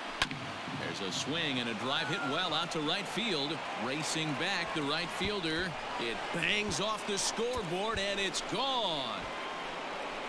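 A large crowd cheers loudly and then dies down.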